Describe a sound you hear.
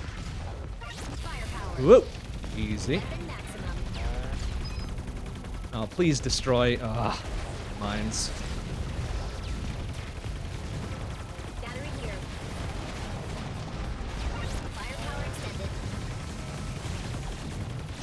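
Video game gunfire and explosions crackle steadily.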